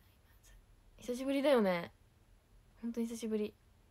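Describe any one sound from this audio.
A young woman speaks close to a microphone in a bright, lively voice.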